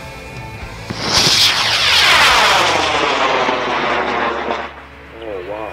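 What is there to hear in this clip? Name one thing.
A model rocket motor ignites with a loud, rushing roar that fades after a few seconds.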